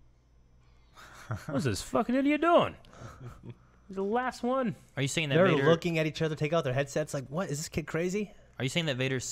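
Men talk and laugh together close to microphones.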